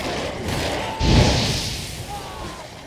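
A fiery blast roars and bursts.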